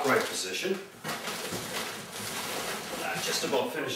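Cardboard rustles as a man rummages in a box.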